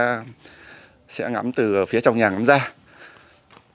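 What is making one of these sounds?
A middle-aged man speaks close to a microphone with animation.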